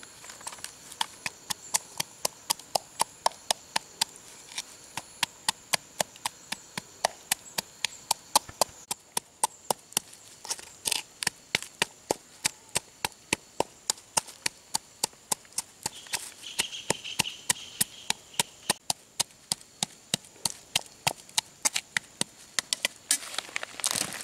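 A wooden pestle pounds steadily in a mortar with quick, regular knocks.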